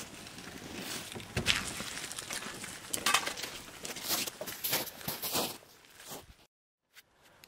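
A man rummages and clatters outdoors.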